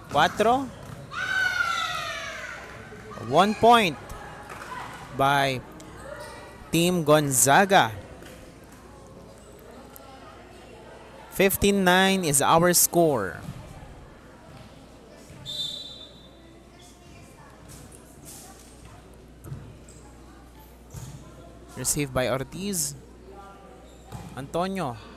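A volleyball is struck hard during a rally.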